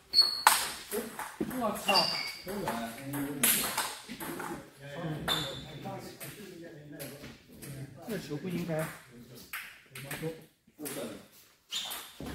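Table tennis balls click against paddles and tables.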